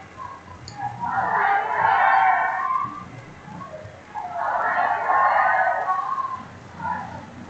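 A crowd cheers and claps in a large echoing gym.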